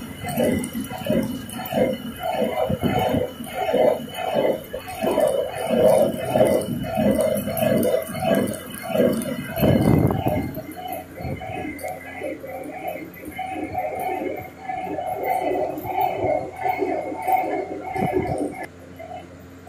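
A woman sings close by in a steady, chanting voice.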